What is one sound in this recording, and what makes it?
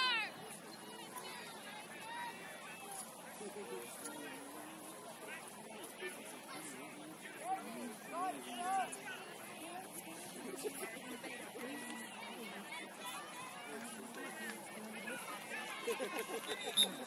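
Young players and adult spectators shout and call out across an open field outdoors.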